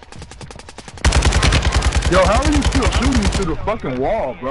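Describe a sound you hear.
A rifle fires in a rapid, loud burst.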